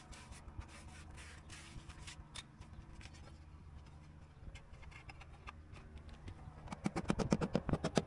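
A trowel scrapes and slaps wet mortar.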